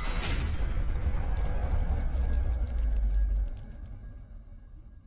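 Sparks crackle and fizz.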